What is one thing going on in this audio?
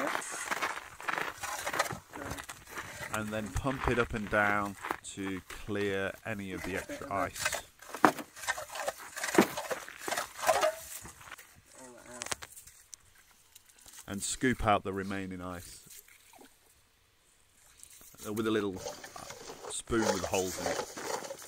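A hand ice auger grinds and scrapes into ice.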